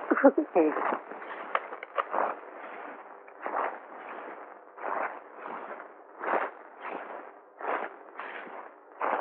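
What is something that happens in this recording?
Paper rustles and tears as an envelope is opened.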